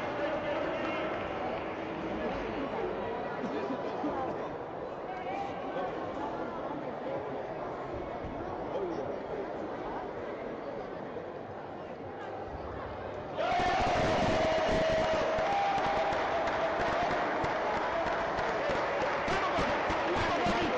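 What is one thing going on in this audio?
Many voices murmur and chatter in a large echoing hall.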